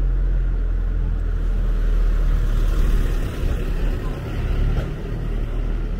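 A bicycle rolls past close by.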